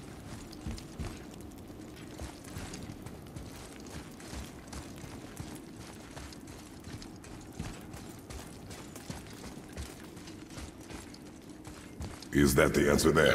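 Heavy footsteps thud slowly on a stone floor.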